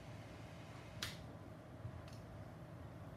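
Metal test probes tap lightly against a small circuit board.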